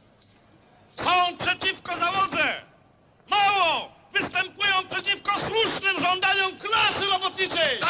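A middle-aged man speaks forcefully into a microphone, heard through loudspeakers.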